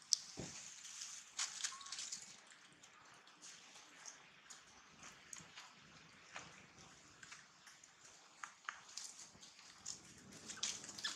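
Monkeys rustle and crunch through dry leaves on the ground.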